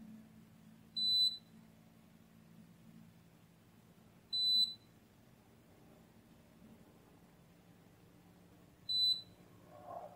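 A multimeter beeps in short, high tones.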